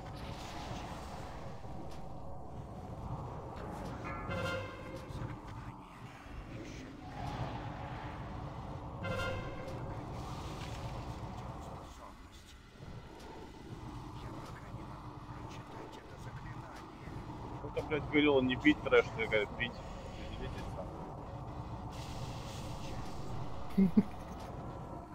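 Magic spells whoosh and crackle in a fantasy battle.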